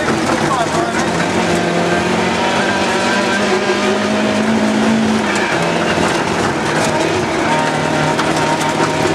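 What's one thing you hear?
A car engine roars loudly from inside the cabin, revving up and down.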